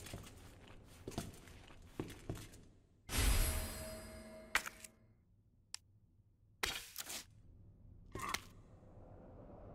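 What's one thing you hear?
Short clicks sound as a menu is browsed.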